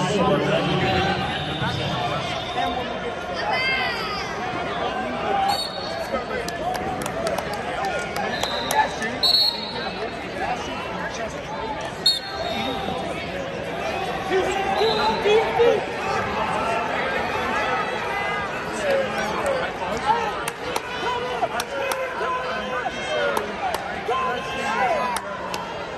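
A crowd murmurs and calls out across a large echoing hall.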